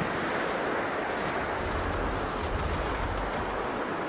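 Boots crunch through snow.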